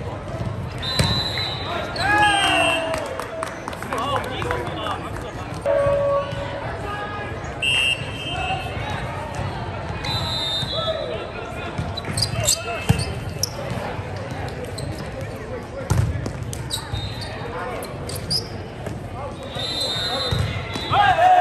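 A volleyball is struck with sharp slaps.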